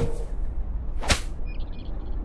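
A golf club swings and strikes a ball with a sharp crack.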